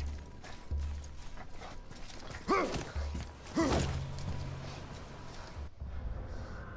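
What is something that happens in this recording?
Heavy footsteps crunch on stone.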